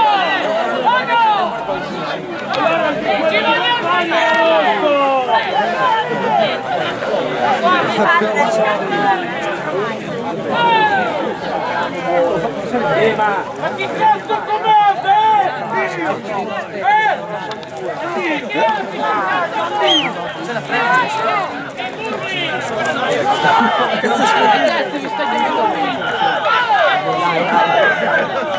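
Young men call out to each other across an open field.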